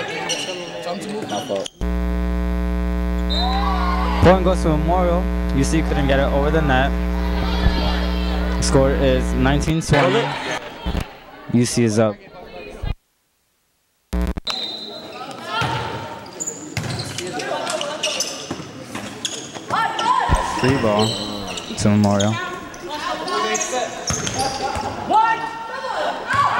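Young women shout and call out to each other in an echoing gym.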